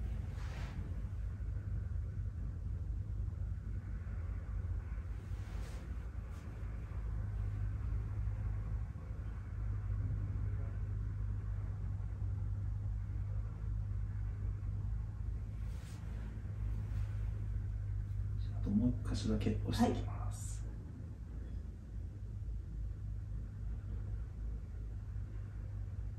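Hands rub and press on denim with a soft rustle.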